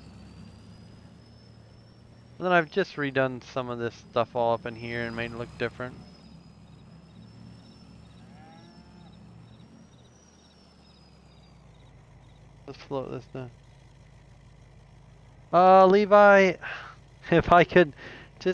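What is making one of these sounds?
A pickup truck engine idles and rumbles low.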